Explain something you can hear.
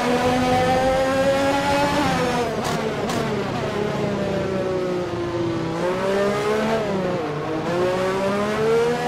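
Rain spray hisses under the tyres.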